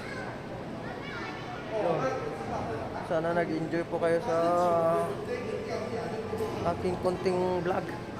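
A man talks close by, in a calm voice.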